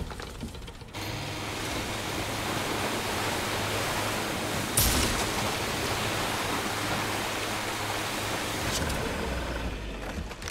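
Water rushes and splashes against a moving boat.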